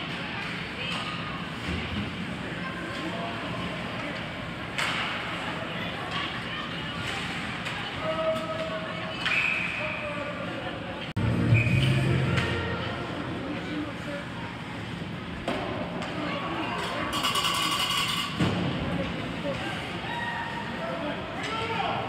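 Spectators shout and cheer in an echoing arena.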